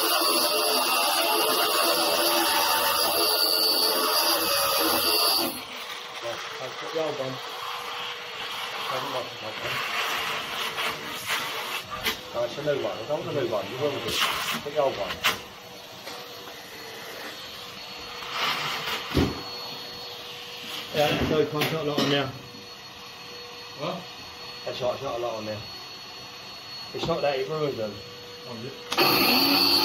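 A power tool whines loudly as it grinds stone.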